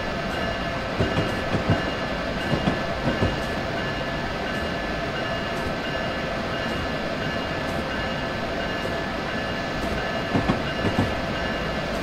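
Train wheels clunk over rail joints in quick pairs.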